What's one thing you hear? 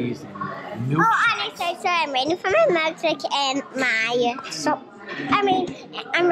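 A young child talks and squeals close by.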